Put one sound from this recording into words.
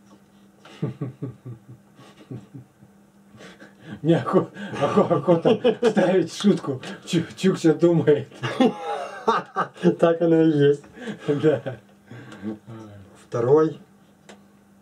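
An older man talks with animation close by.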